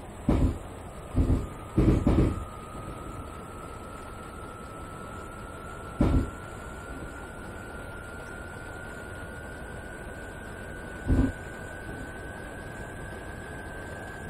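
An electric motor whines, slowly rising in pitch.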